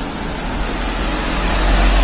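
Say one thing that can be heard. A bus engine rumbles as it drives past.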